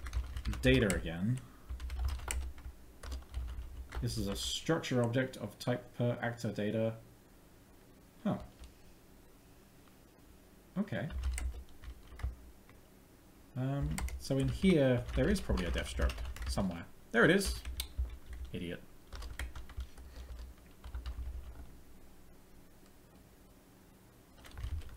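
Keys clatter on a keyboard.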